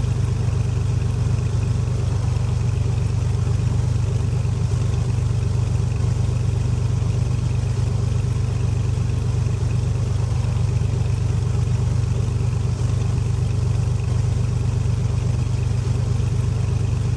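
A small propeller plane's engine drones steadily at low power.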